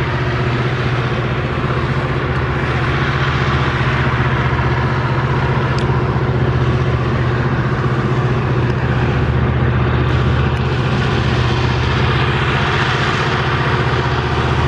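A diesel-electric freight locomotive works hard uphill with a deep, steady engine drone.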